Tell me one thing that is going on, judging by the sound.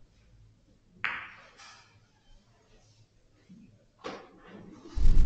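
Billiard balls click against each other and knock off the cushions.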